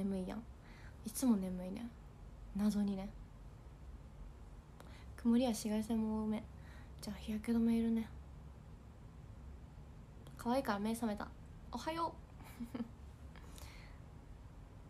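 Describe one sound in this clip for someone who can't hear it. A young woman talks calmly and close to the microphone, in short bursts with pauses.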